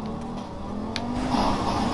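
Tyres screech on concrete.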